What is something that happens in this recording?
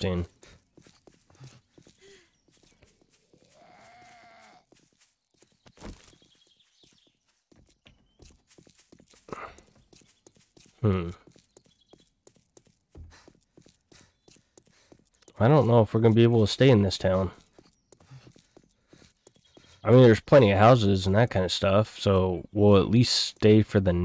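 Footsteps tread steadily on pavement.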